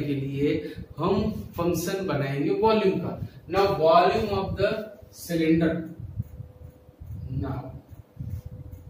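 A man speaks calmly, explaining, close to a microphone.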